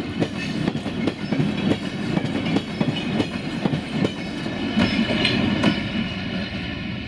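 Freight wagon wheels clatter over rail joints.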